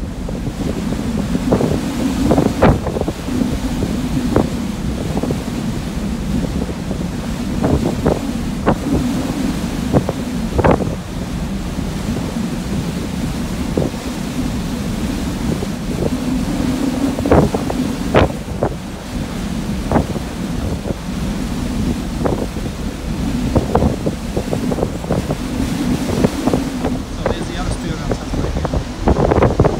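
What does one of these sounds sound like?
Strong wind buffets and gusts outdoors.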